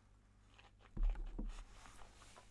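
A glass is set down on a wooden table with a soft knock.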